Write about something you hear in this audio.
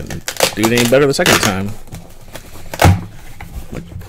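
Cardboard flaps rustle as a box is opened.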